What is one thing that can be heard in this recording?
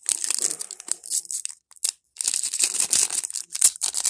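A foil pack tears open.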